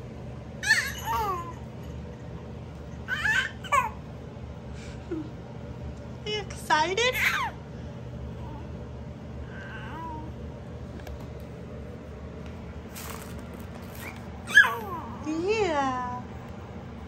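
A baby coos and squeals close by in short bursts.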